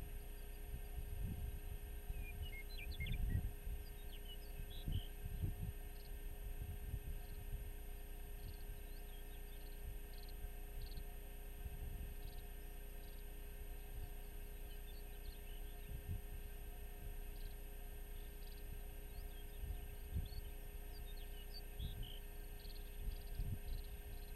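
Wind gusts and rumbles across open ground outdoors.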